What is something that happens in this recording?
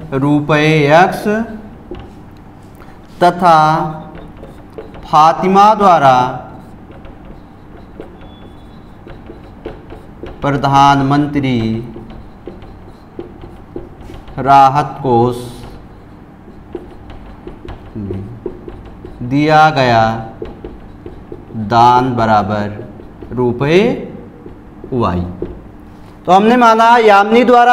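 A man speaks in short phrases, calmly explaining, close by.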